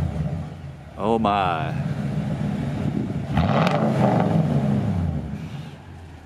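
A truck engine revs sharply and settles back.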